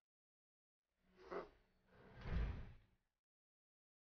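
An elevator door slides shut with a thud.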